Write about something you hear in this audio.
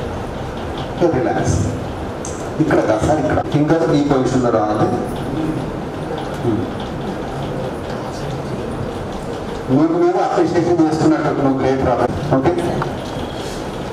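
A man speaks calmly into a clip-on microphone in a large room with a slight echo.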